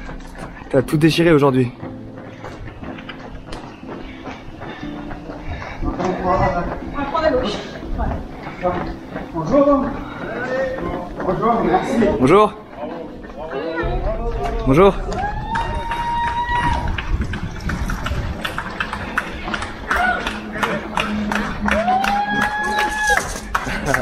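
Several people jog on pavement with quick footsteps.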